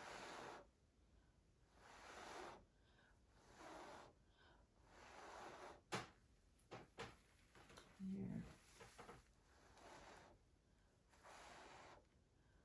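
A person blows hard in short, repeated puffs of air close by.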